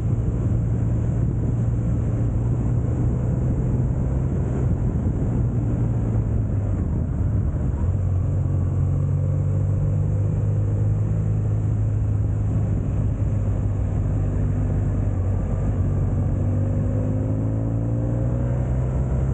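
A motorcycle engine hums steadily, shifting pitch as it changes gear.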